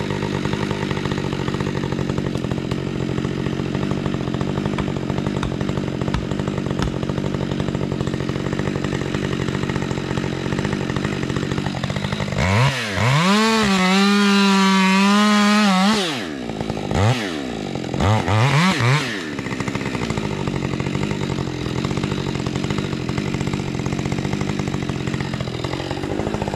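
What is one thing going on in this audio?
A chainsaw idles steadily nearby.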